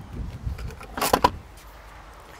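A charging plug clicks sharply.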